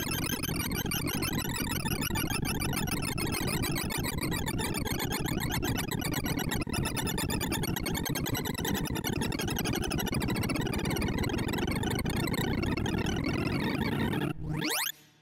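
Rapid electronic bleeps chatter in a dense, buzzing stream.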